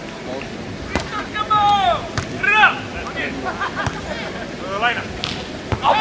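A volleyball is struck with a hand with a dull slap.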